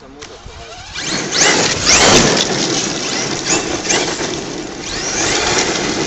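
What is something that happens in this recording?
Gravel sprays and crunches under a toy car's tyres.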